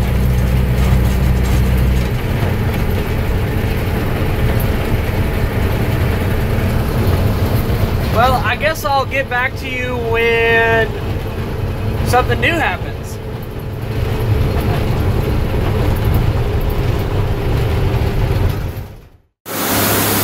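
A farm vehicle engine rumbles while driving.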